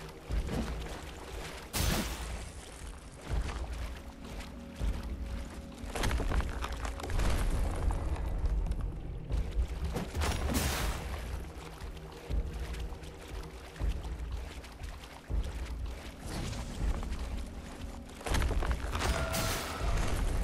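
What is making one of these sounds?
Swords clash with sharp metallic hits.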